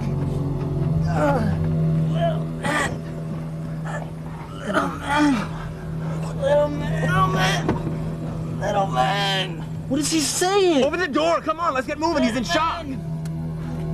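Several men shout and laugh with excitement close by.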